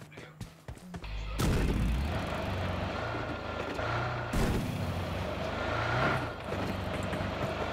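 A car engine starts and roars while driving.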